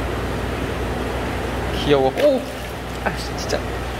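Water splashes as a fish is released into a tank.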